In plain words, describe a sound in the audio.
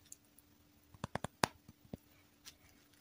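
Small plastic items click as they are set down.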